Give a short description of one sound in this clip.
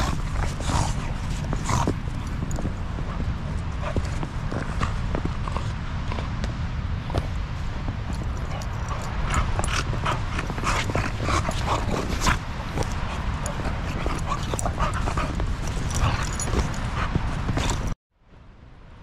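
Boots crunch through snow close by.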